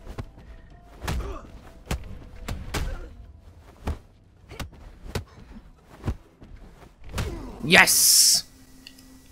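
Blades clash and strike in quick, sharp blows.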